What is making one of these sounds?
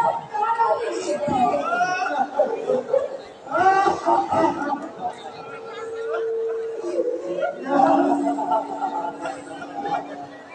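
A man declaims loudly and dramatically, heard from a distance in a large hall.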